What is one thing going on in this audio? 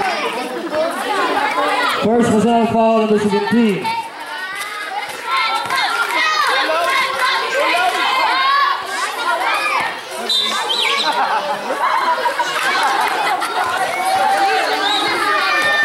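A crowd of children and young people shouts and chatters outdoors.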